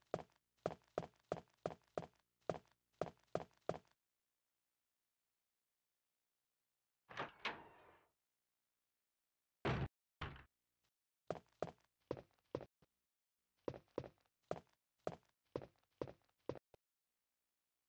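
Footsteps thud steadily on a wooden floor.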